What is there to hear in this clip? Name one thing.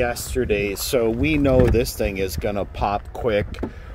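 A vehicle door clicks open.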